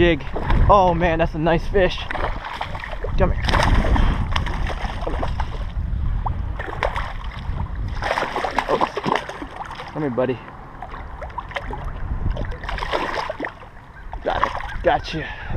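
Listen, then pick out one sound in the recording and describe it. A fish splashes and thrashes in water close by.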